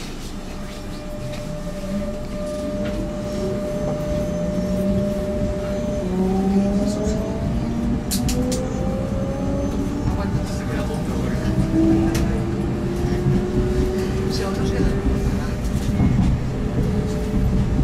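A train's motor whines, rising in pitch as the train speeds up.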